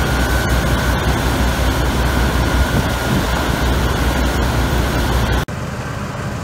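A combine harvester roars close by as it cuts through a wheat crop.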